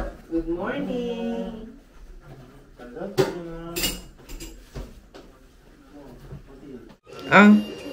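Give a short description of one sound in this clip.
Women talk casually nearby.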